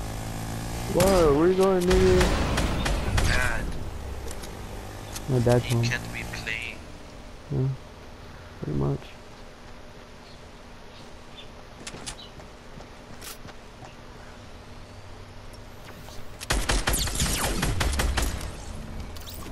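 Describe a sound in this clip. A rifle fires shots in quick bursts.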